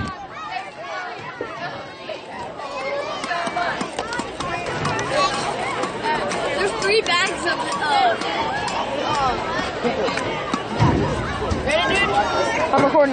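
A crowd of spectators cheers and shouts outdoors, growing louder.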